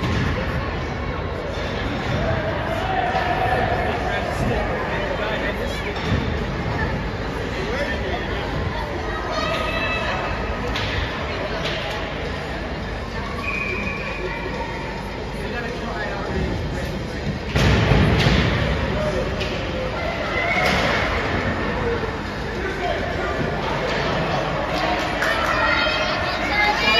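Spectators chatter and call out in the echoing rink.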